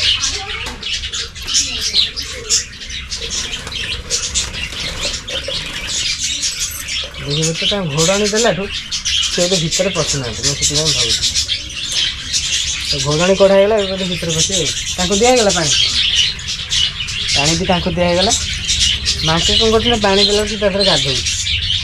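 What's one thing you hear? Small birds chirp and twitter constantly close by.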